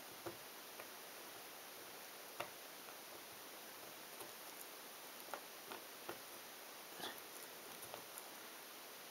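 Jigsaw puzzle pieces click softly as they are pressed into place.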